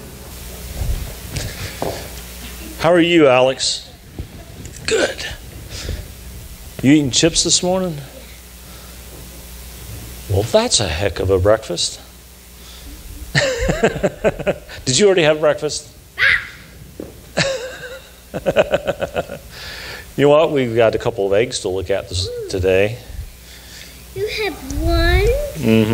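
An elderly man talks warmly in a large echoing room.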